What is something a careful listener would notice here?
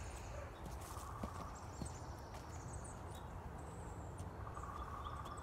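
Footsteps crunch softly on a dirt path.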